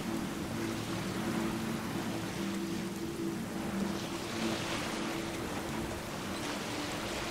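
Water splashes and laps against a small sailing boat's hull.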